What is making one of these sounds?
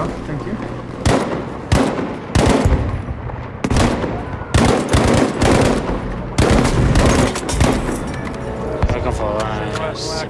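A gun fires sharp shots in short bursts.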